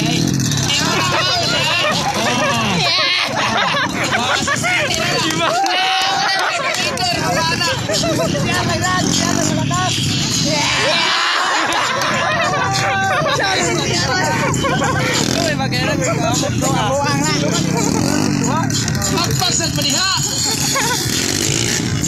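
Motorcycle engines rev and roar on a dirt track.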